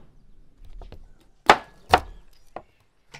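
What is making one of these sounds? A knife chops through fish with sharp knocks.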